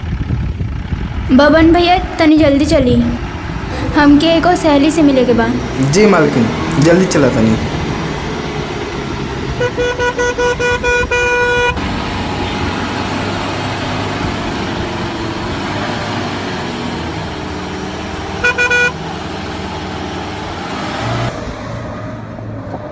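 A car engine hums steadily as the vehicle drives along.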